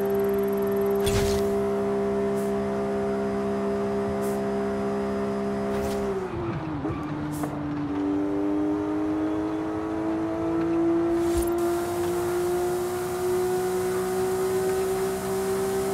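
A car engine roars at high revs, drops sharply in pitch, then climbs steadily again.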